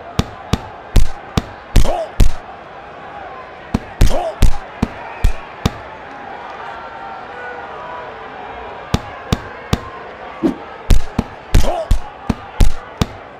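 Punches land with sharp thuds in quick bursts.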